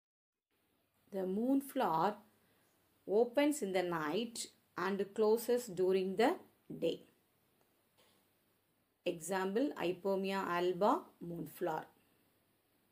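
A woman speaks calmly and clearly.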